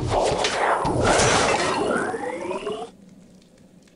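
A fiery blast roars and crackles.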